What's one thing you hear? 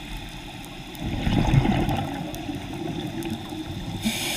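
Air bubbles gurgle and rumble from a nearby diver's breathing underwater.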